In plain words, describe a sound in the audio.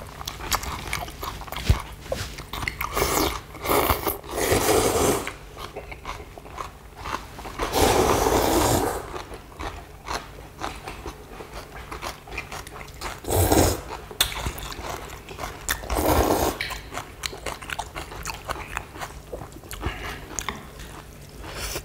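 Chopsticks click against bowls.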